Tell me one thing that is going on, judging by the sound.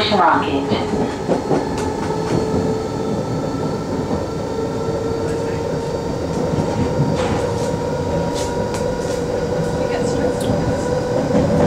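A train rumbles and hums steadily along the track.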